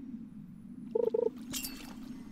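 A short chime sounds as a fish bites the line.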